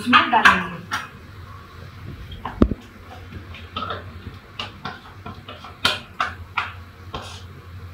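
A metal bowl clinks against another bowl.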